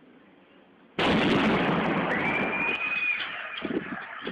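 A burning car explodes with a loud, sudden blast that rumbles on and fades.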